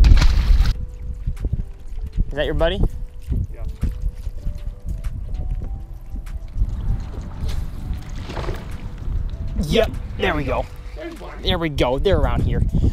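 Small waves lap against a boat's hull.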